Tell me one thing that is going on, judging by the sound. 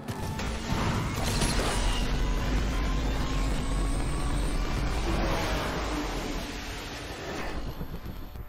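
A nitro boost whooshes loudly.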